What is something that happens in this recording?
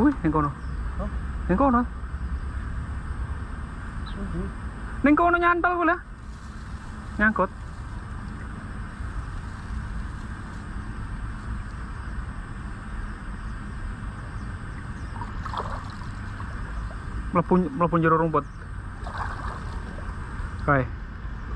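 Water sloshes as a man wades through a river.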